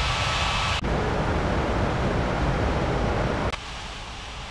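A jet engine rumbles steadily.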